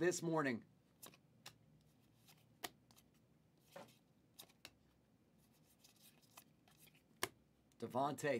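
Cards slap and rustle as a man flips through a stack.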